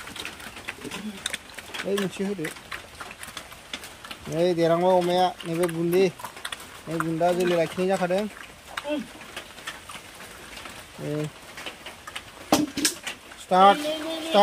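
Pigs chomp and slurp wet feed noisily.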